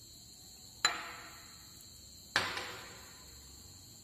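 A metal spoon clinks against a ceramic bowl, ringing briefly.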